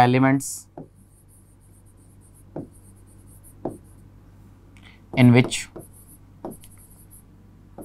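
A pen taps and scratches faintly on a board.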